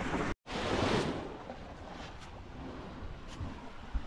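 A shovel scrapes through sand.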